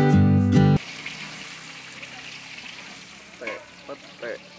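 Food sizzles and hisses in a hot wok.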